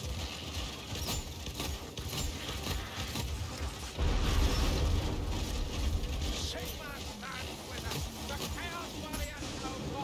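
Monsters snarl and growl in a crowd.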